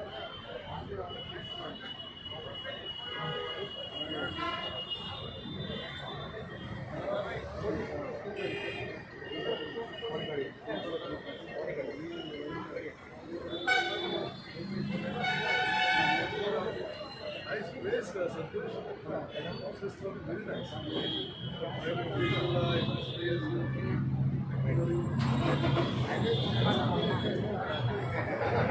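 A crowd of men chatter all around, close by.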